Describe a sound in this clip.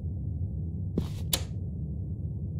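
A metal locker door clicks open.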